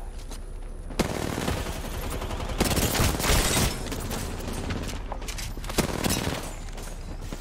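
Video game gunfire bursts out.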